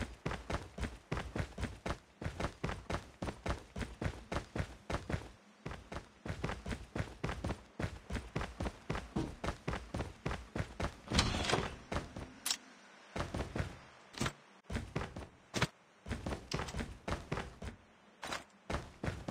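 Quick footsteps run steadily across a hard floor.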